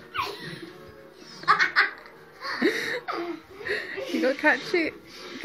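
A young girl talks and laughs excitedly close by.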